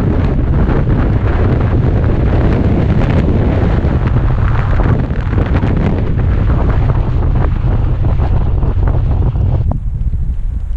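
Bicycle tyres rumble over a bumpy dirt trail.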